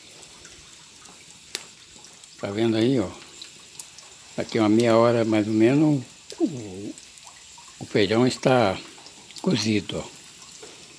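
A wood fire crackles softly.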